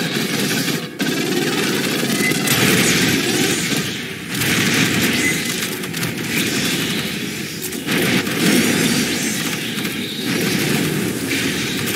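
A flamethrower roars with a loud rushing blast of fire.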